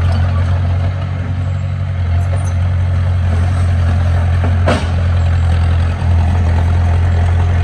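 A bulldozer's tracks clank as it moves.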